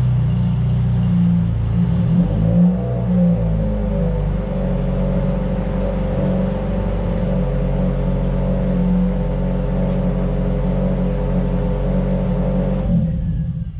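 A sports car engine idles with a deep, steady rumble.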